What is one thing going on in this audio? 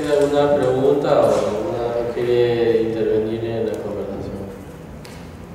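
A man speaks calmly into a microphone, heard through a loudspeaker in a room.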